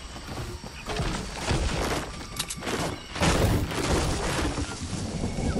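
A pickaxe strikes wood with heavy thuds.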